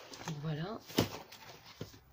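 A fabric item is set down on a wooden table with a soft knock.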